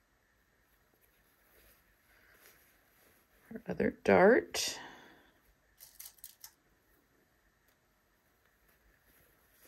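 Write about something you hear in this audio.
Fabric rustles softly as it is handled close by.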